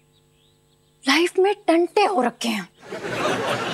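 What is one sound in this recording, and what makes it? A young woman speaks with worry, close by.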